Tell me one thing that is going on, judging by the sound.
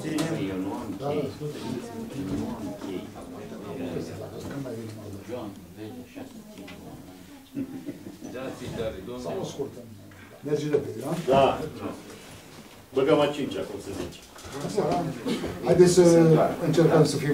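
Several adults talk nearby.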